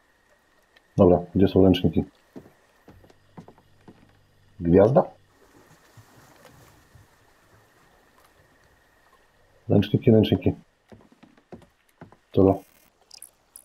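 A young man speaks quietly, close by.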